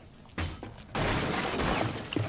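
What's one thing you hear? A wooden barricade is smashed and splinters.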